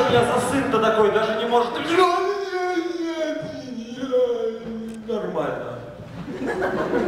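A young man sings loudly through a microphone and loudspeakers in a large hall.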